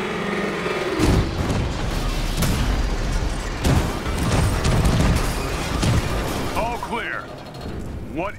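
A heavy metal craft crashes to the ground with a grinding roar.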